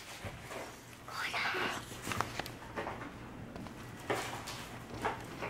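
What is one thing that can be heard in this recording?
A young girl talks playfully close by.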